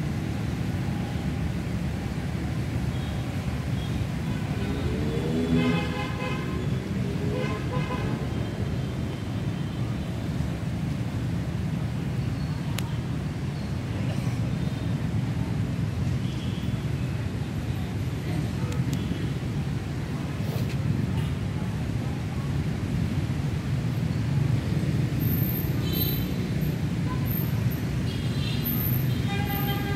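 Steady rain pours down outdoors.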